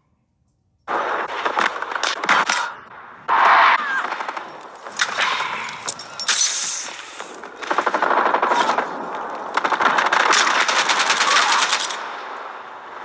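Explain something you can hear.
Automatic rifle fire sounds in bursts in a video game.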